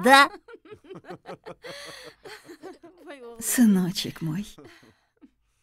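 A woman laughs warmly nearby.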